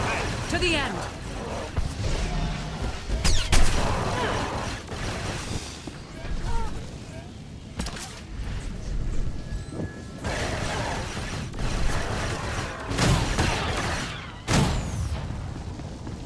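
Blaster shots and energy blasts crackle in a fight.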